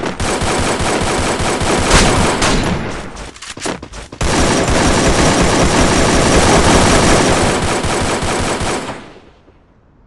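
Automatic rifle fire rattles in a video game.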